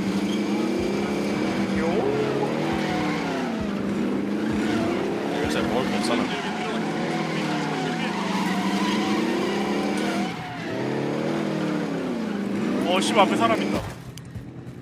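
An off-road quad bike engine drones and revs up and down.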